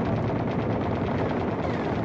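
A gun fires with a sharp blast.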